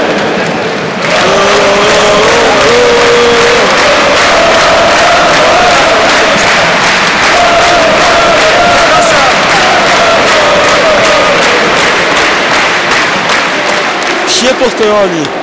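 Spectators clap in a steady rhythm.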